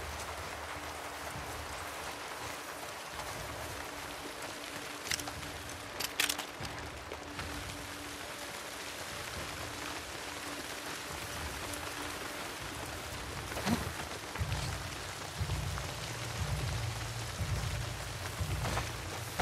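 Tall grass rustles and swishes as someone pushes through it.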